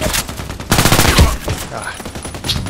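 Gunshots ring out from a short distance.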